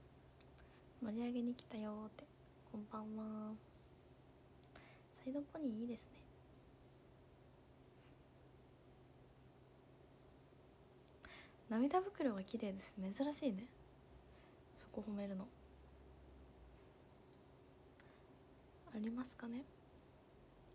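A young woman speaks softly and casually in short bursts, close to a microphone.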